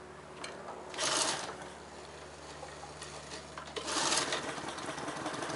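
A man yanks a lawnmower's starter cord.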